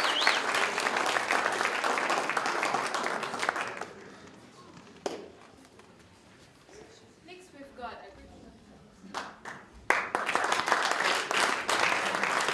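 An audience claps and applauds in a room.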